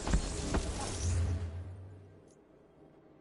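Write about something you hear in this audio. A deep whoosh swells and fades at the start.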